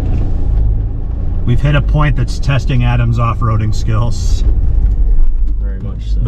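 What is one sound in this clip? Mud clumps patter against a windshield.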